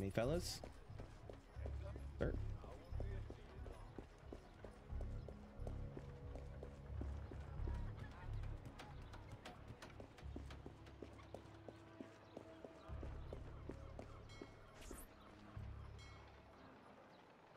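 Footsteps tap on wooden boards and stone.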